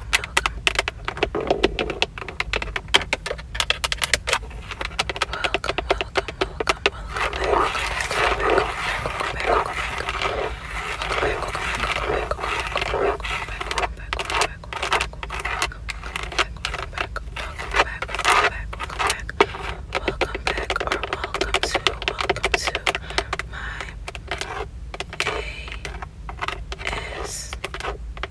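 Long fingernails tap and click rapidly on a leather-covered plastic surface.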